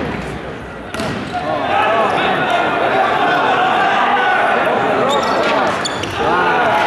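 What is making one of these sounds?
A volleyball is struck hard with a sharp smack.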